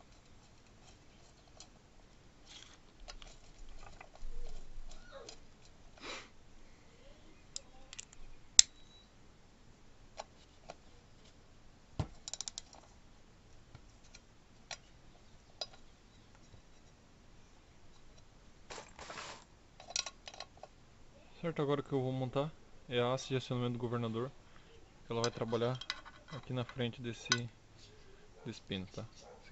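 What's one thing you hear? Metal parts clink and tap against each other.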